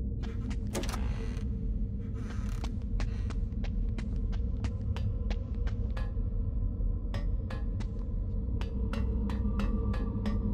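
Footsteps tap.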